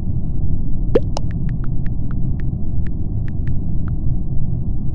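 Soft keyboard clicks tap quickly during typing.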